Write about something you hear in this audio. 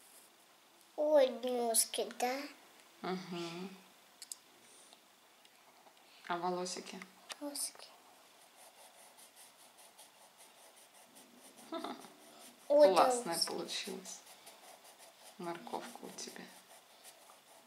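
A young child speaks in short bursts, close by.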